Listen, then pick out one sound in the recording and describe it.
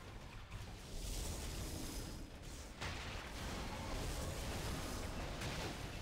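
Magic blasts and clashing effects burst loudly.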